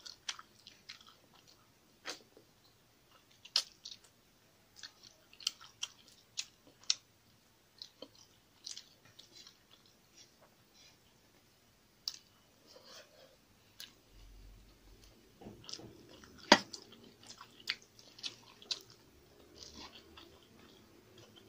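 Rice and fish crackle softly under a young woman's fingers.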